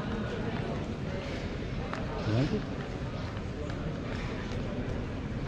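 Footsteps scuff on stone paving close by.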